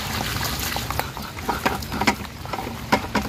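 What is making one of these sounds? Wet fish tumble out of a bucket with a splashing slither.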